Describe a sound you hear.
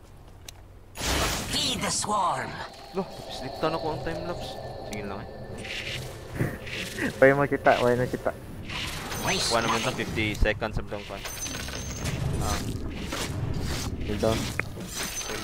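Magic spell effects whoosh and crackle in a fantasy battle.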